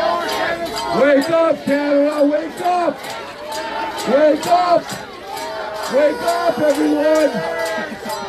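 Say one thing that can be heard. A crowd chants loudly in unison, in repeated bursts.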